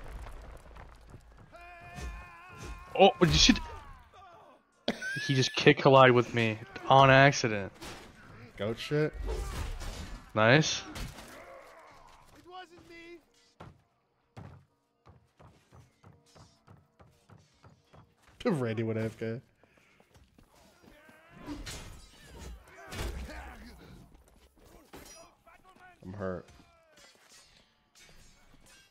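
Weapons clash and thud in a melee fight.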